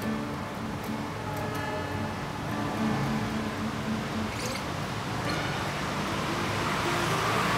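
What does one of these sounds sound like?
An acoustic guitar is played with plucked notes, close by.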